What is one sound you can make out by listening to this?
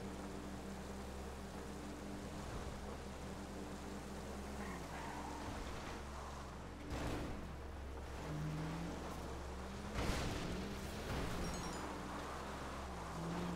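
A car engine hums steadily, its pitch rising and falling as it drives.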